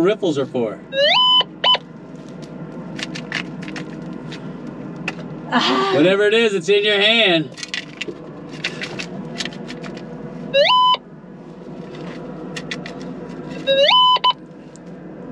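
A metal detector gives a rising electronic beep.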